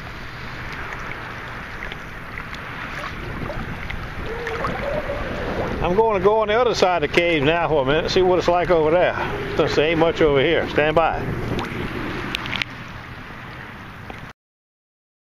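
Small waves lap and splash in shallow water.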